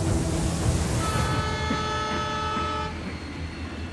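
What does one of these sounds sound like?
A train horn blares.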